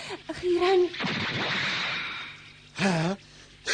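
A snake hisses loudly.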